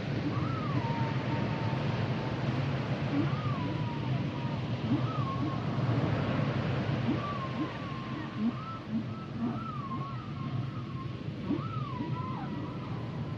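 Whales call with gliding, whistling moans.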